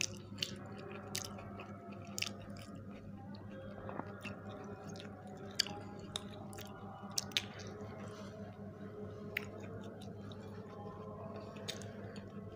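A woman bites into crunchy pastry and chews noisily up close.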